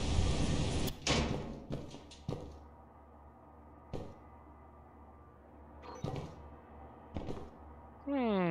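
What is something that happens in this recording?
Footsteps thud on a hard tiled floor in a large echoing hall.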